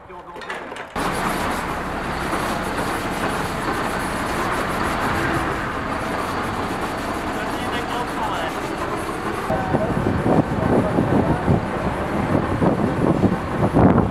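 A large truck engine rumbles loudly and steadily nearby.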